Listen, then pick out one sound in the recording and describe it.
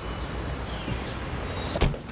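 A car door shuts.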